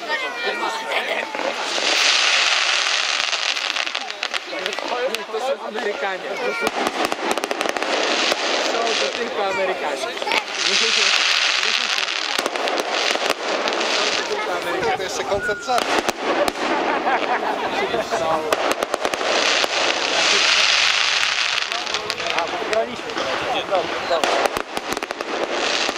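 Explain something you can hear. Rockets whistle as they shoot up.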